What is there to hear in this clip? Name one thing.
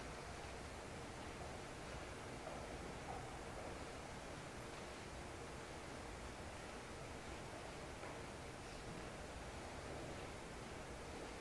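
A man prays aloud, his voice echoing through a large hall.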